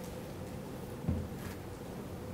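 A single soft thud sounds as objects are set down.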